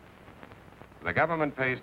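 A man speaks anxiously into a telephone.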